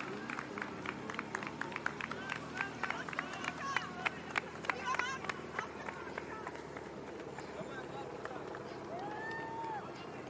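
Spectators clap and cheer along the road.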